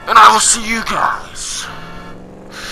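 A man speaks loudly and with animation into a close microphone.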